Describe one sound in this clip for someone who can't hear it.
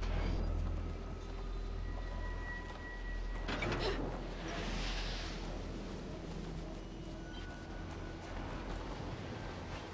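A sled's runners scrape across snow.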